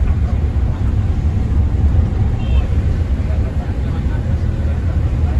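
A bus engine rumbles steadily from inside the cabin.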